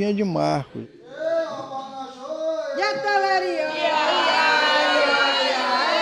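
A group of people sing together outdoors.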